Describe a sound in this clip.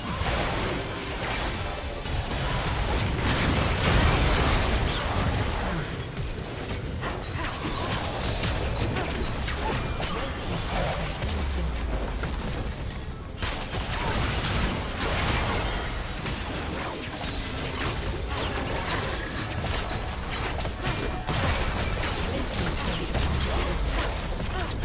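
Game battle effects crackle, whoosh and boom in a rapid jumble.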